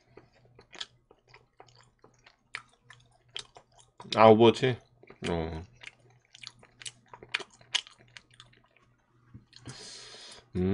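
A man chews food close to a microphone with soft, wet mouth sounds.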